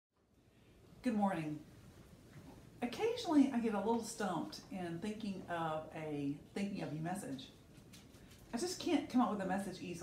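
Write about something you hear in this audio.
A middle-aged woman speaks calmly and warmly close to the microphone.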